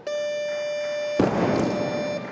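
A heavy barbell drops onto the platform with a loud thud.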